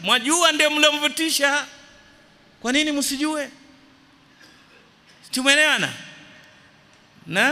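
A middle-aged man preaches with animation into a microphone, in bursts with pauses.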